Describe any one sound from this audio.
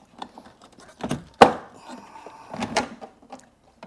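A plastic car trim panel clicks and snaps into place.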